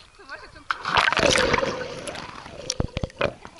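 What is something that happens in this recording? Water churns and splashes close by.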